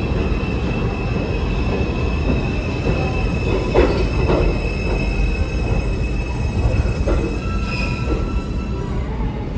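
Train brakes squeal with a high steady whine.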